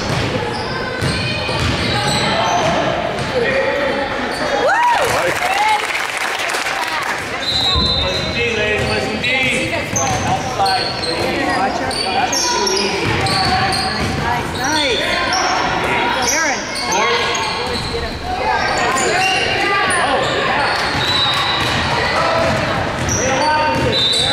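Young women players call out to each other across the hall.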